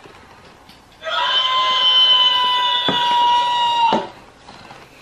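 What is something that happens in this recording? A toy rooster plays a loud electronic tune.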